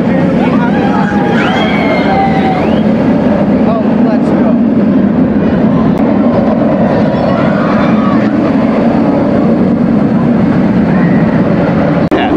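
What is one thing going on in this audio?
A roller coaster train roars along its track.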